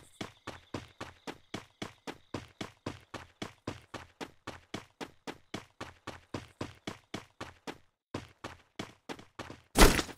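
Footsteps run quickly and steadily on the ground.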